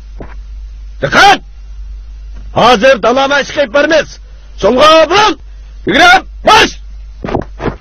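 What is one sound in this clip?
A group of men shout drill calls in unison.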